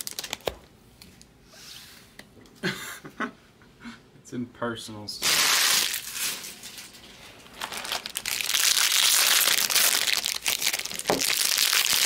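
Stacks of trading cards rustle and slide as hands handle them.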